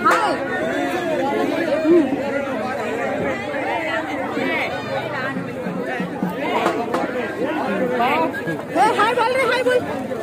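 A man speaks excitedly close by.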